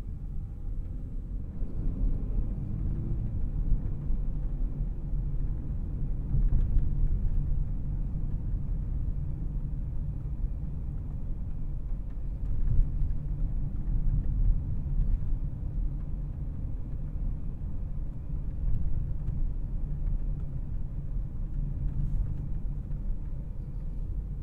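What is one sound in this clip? A twin-turbocharged W12 luxury sedan engine hums low, heard from inside the cabin as the car drives.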